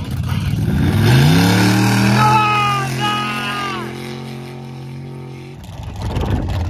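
A truck engine revs hard and roars as it pulls away.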